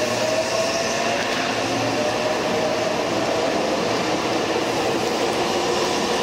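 A train pulls out slowly, its motors humming and whining.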